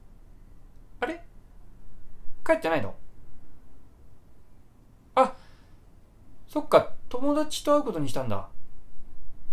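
A young man speaks calmly in short phrases close to a microphone.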